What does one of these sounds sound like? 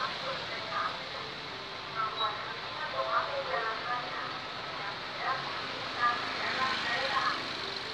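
A van drives past with its engine running.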